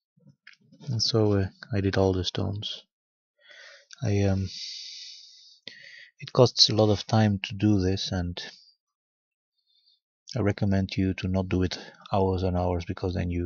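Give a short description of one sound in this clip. A man speaks calmly, very close to the microphone.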